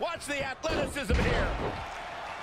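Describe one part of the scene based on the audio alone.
A body slams onto a wrestling mat with a heavy thud.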